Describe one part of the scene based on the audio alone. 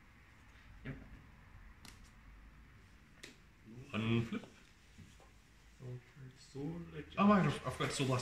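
Playing cards tap and slide softly on a mat.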